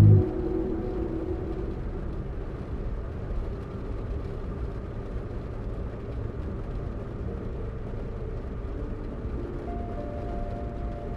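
A car engine drones steadily as the car drives along a road.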